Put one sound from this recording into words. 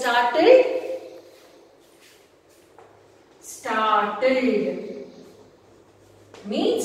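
A woman speaks clearly and at a measured pace.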